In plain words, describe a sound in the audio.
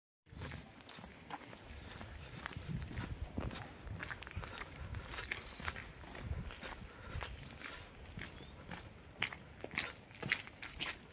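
Footsteps crunch on snow and a wet path.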